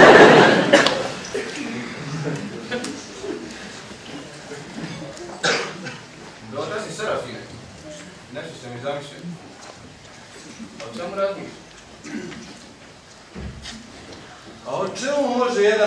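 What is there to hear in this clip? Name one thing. A man talks calmly into a microphone over a hall's loudspeakers.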